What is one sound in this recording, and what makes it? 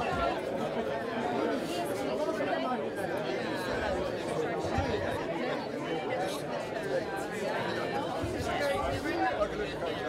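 An elderly man talks with animation nearby.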